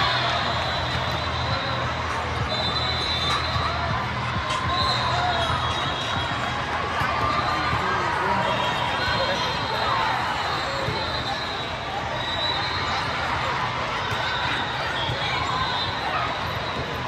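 A large echoing hall rings with the murmur of a crowd.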